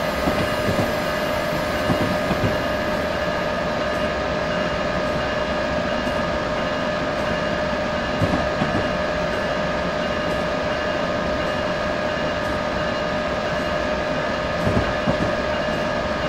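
Train wheels clatter over rail joints now and then.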